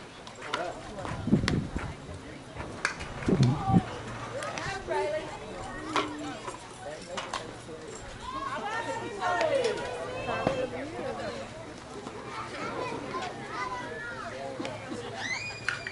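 Women call out and cheer to each other across an open field outdoors.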